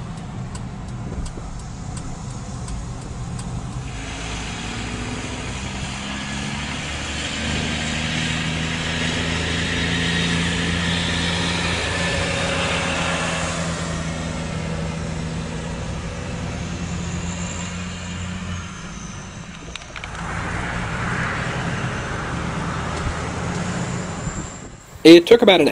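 A car engine hums from inside a moving vehicle.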